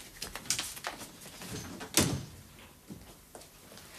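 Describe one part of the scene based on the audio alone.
A door swings shut with a thud.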